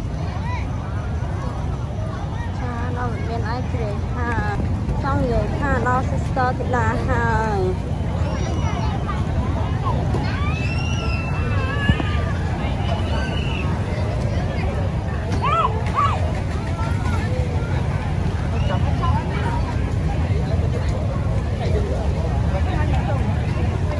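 A large crowd chatters outdoors all around.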